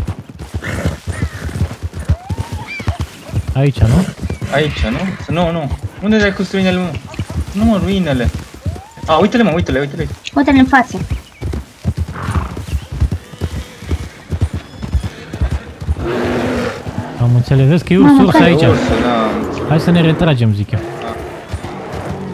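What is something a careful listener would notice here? A horse's hooves thud steadily on soft ground.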